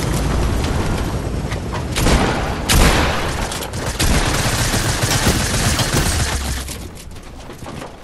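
Wooden walls clatter as they are built.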